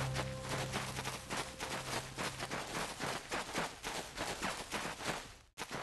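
Quick footsteps run over dry grass.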